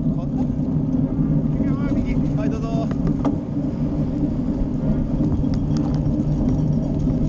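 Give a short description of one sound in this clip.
Bicycle tyres rumble steadily over a gravel path.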